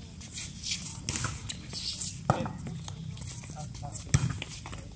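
A volleyball is struck with hands, making sharp slaps.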